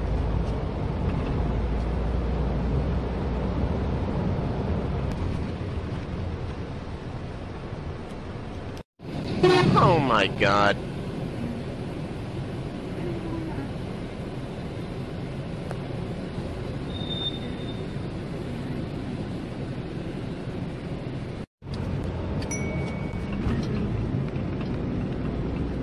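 Car engine and road noise hum steadily from inside a moving vehicle.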